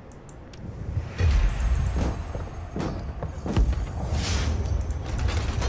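A heavy chest rumbles and creaks open.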